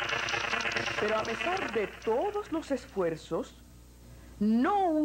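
An elderly man speaks loudly and theatrically.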